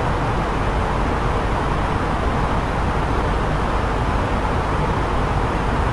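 An airliner's engines and rushing air roar steadily.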